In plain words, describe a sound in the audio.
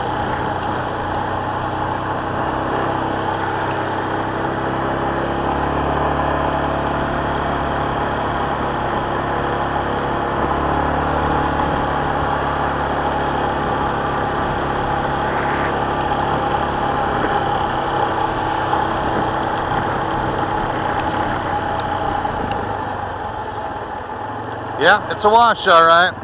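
Tyres crunch over gravel and loose sand.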